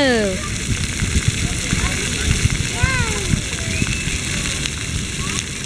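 Small feet patter and splash through shallow water.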